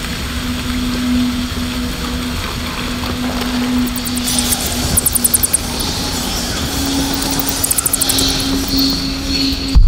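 A torch flame crackles.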